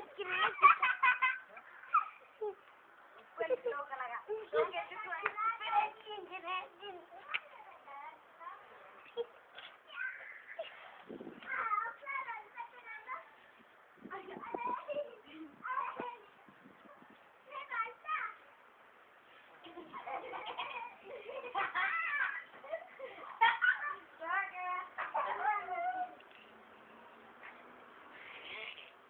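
Children talk and shout excitedly close by.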